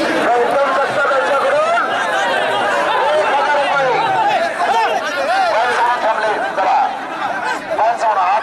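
A large crowd shouts and cheers loudly outdoors.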